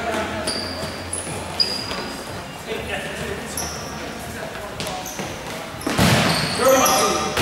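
Sneakers squeak sharply on an indoor court.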